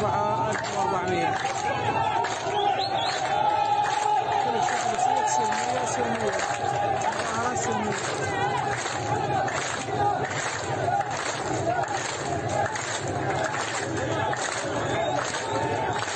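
A large crowd of men chants loudly outdoors.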